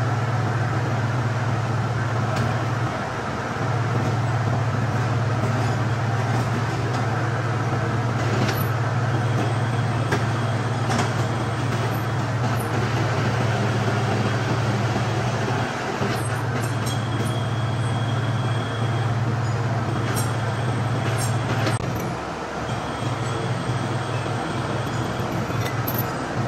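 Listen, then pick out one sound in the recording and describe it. An overhead crane hoist hums as it lowers a heavy steel part.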